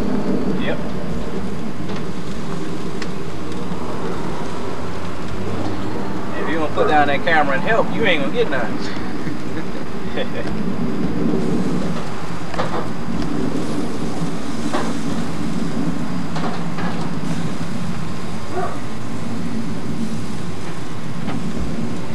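Meat sizzles steadily on a grill.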